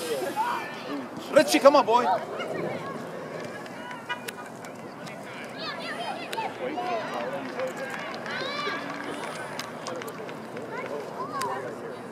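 Young players shout to each other outdoors on an open field.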